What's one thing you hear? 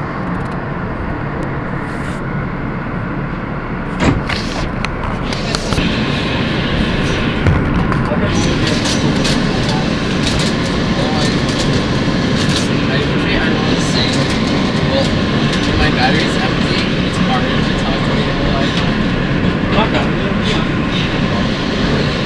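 A subway train rumbles and rattles along the tracks.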